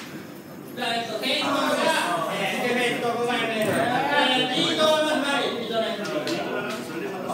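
A second young man talks through a microphone over loudspeakers.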